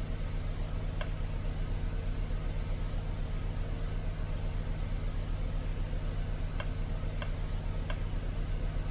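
Short electronic beeps sound from a ticket machine.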